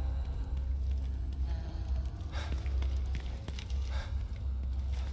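Footsteps thud on hard stone steps.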